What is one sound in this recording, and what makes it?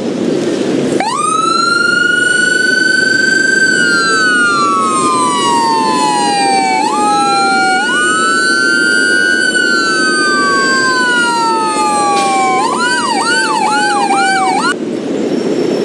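A siren wails in long rising and falling sweeps, then yelps quickly before cutting off.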